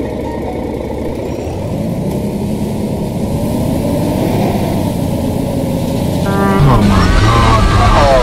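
A bus engine hums steadily as the bus pulls away and speeds up.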